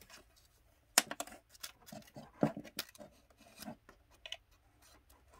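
Small pieces of card or wood tap and scrape against each other as a hand works on them.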